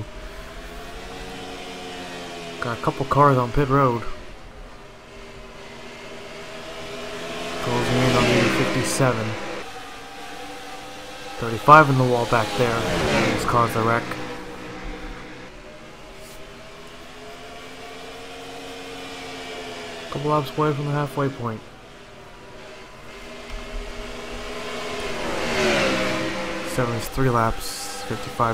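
Race car engines drone steadily and rise and fall in pitch as cars pass.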